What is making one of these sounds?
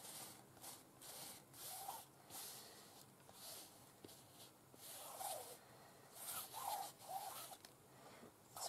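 Hands rub and smooth a piece of fabric.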